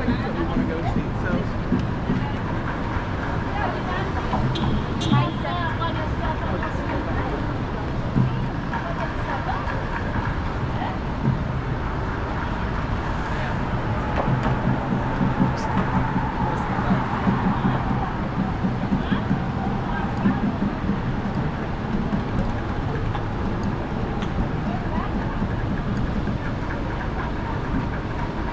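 Traffic hums steadily on a busy city street outdoors.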